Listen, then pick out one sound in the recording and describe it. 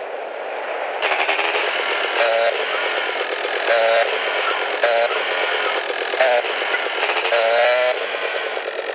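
A motorbike engine revs and drones loudly.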